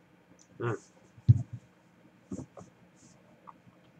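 A glass is set down on a table with a light knock.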